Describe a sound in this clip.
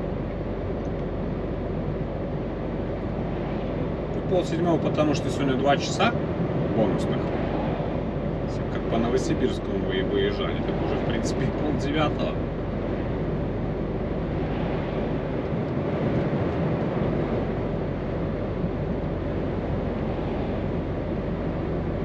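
A vehicle's engine hums and tyres roar steadily on the road.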